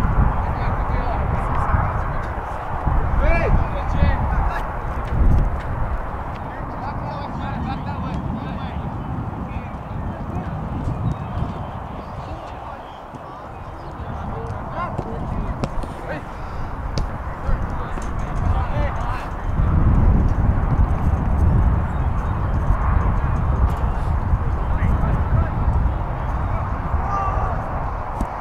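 Wind blows and rumbles across the microphone outdoors.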